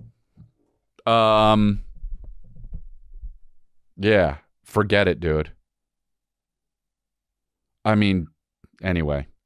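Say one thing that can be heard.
A man speaks in short, animated bursts close to a microphone.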